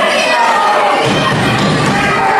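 Bodies thud onto a wrestling ring's mat.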